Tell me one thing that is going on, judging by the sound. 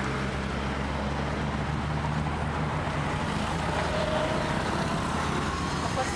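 A bus engine drones as the bus drives by.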